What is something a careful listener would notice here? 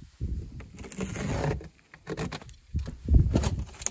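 A man's jacket rustles as he works close by.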